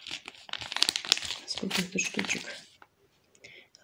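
A paper seed packet rustles and crinkles in a hand.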